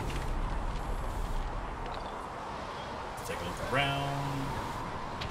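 Footsteps crunch steadily on snowy stone.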